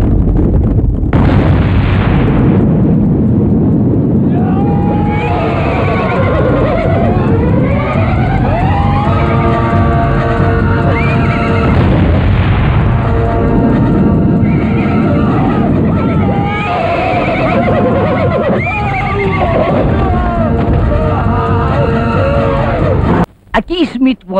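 Explosions roar with a loud, rumbling blast.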